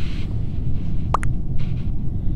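Keys tap on a phone keyboard.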